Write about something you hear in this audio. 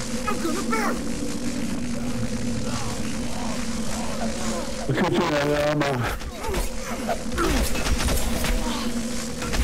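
Zombies groan and snarl nearby.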